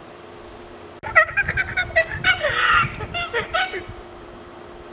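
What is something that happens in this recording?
A young man makes loud monkey-like hooting and chattering sounds.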